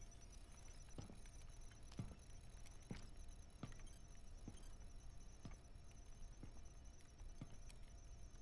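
Boots step slowly and heavily across a metal floor.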